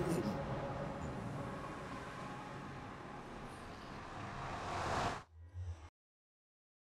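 A magical portal hums and whooshes loudly.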